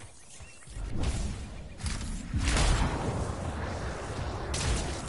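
An energy blast whooshes and crackles.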